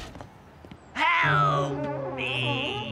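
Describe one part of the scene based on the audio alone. A man screams in fright.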